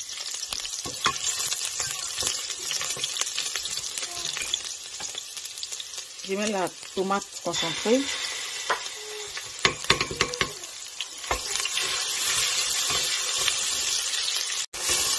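A wooden spoon scrapes and knocks against a metal pot.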